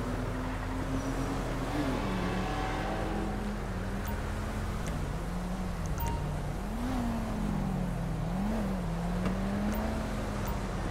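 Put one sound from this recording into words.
A car engine hums steadily nearby.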